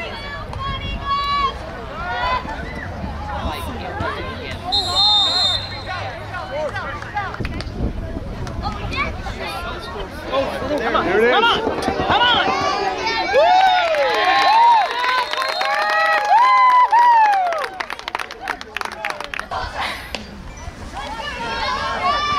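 Young men shout and cheer loudly outdoors.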